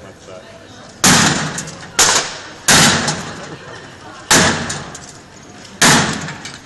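A sledgehammer smashes heavily into a slot machine, crashing and clattering again and again.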